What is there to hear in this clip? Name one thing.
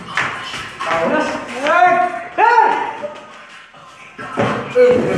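Young men shout loudly and excitedly close by.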